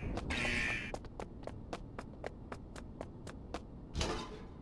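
Heavy boots step quickly on a hard floor.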